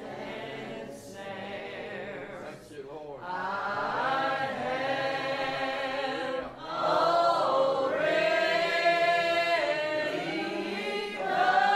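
A piano plays along with the singing.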